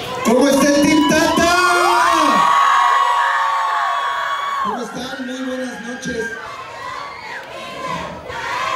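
Men sing loudly together through loudspeakers.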